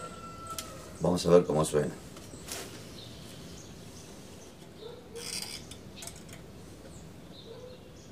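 A man plucks and strums a mandolin softly up close.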